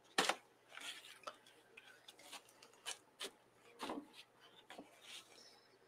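A plastic paint palette knocks and clatters against a hard surface.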